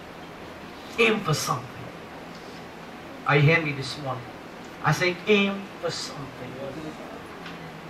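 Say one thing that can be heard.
A man speaks with emphasis in short bursts through a microphone in a large room.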